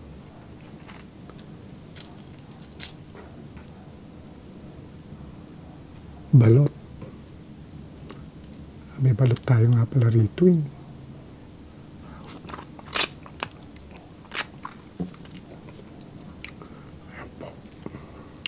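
Crispy food crunches and crackles as it is handled.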